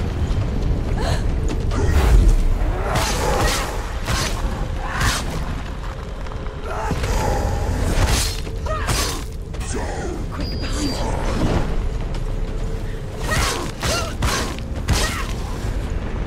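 A sword swishes and strikes repeatedly in a fight.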